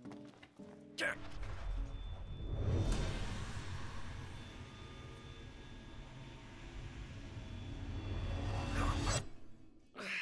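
A deep roaring rumble swells and then cuts off.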